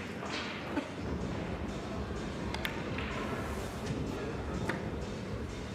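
Pool balls knock against each other and the cushions.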